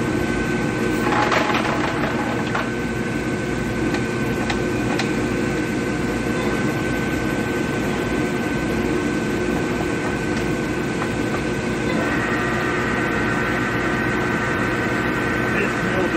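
A large machine hums steadily.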